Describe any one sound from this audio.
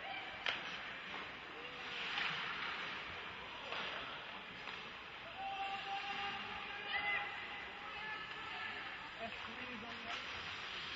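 Hockey skates scrape across the ice in a large echoing rink.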